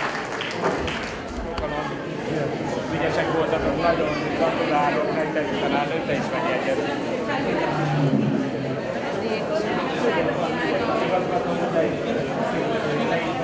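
A crowd of people chatter and murmur nearby.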